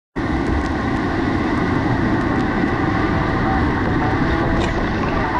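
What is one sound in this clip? Whitewater rapids roar loudly and steadily close by.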